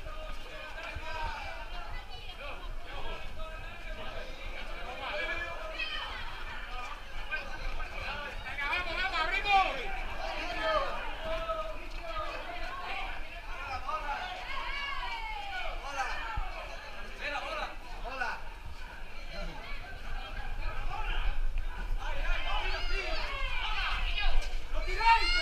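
A crowd of young men chatters and shouts nearby.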